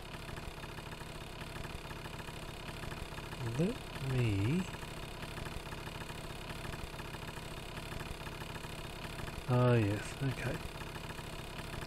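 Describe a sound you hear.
A motorcycle engine idles with a steady hum.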